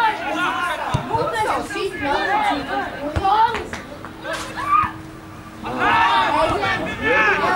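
A football is kicked with dull thuds far off outdoors.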